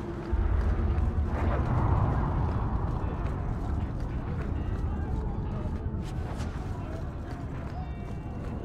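Footsteps crunch on stone at a walking pace.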